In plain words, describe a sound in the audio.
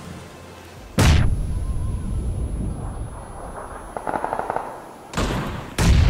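A smoke grenade bursts and hisses loudly.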